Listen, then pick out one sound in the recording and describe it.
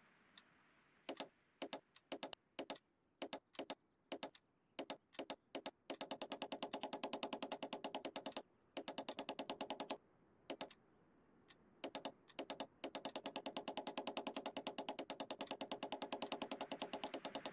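A safe's combination dial clicks rapidly as it turns.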